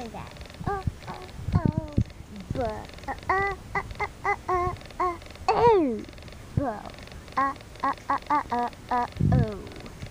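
Small plastic dolls knock and rattle against a bowl.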